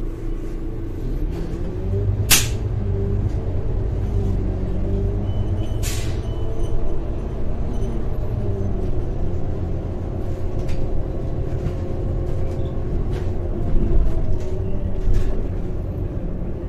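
Bus panels and fittings rattle softly.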